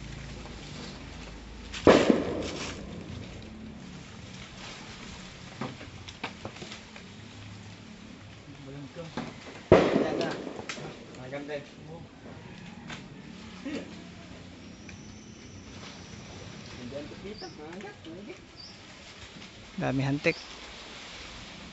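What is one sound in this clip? Leaves and branches rustle as a man climbs in a tree.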